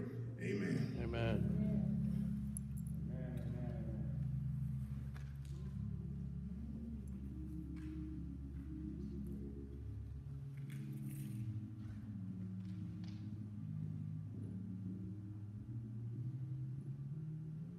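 An organ plays slow, sustained chords.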